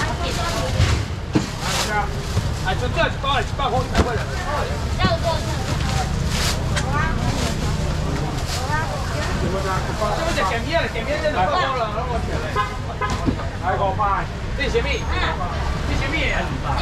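Men and women chatter loudly all around in a busy crowd.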